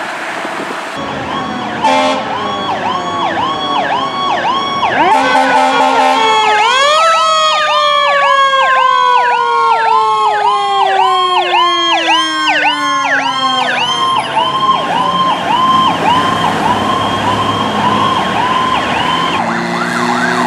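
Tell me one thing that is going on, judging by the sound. A fire truck siren wails in fast, rising and falling cycles.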